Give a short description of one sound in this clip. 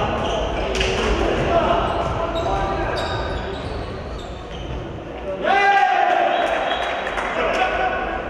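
Footsteps of running players thud and echo in a large hall.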